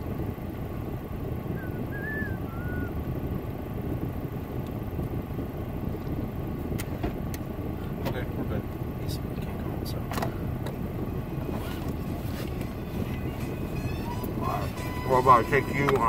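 A car engine rumbles steadily from inside the cabin.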